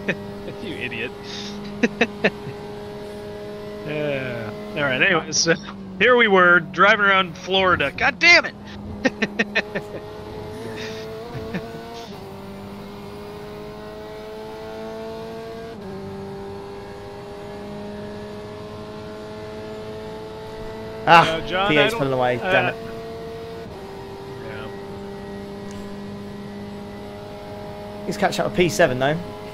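A racing car engine drones steadily, its pitch rising through the gears and dropping at each shift.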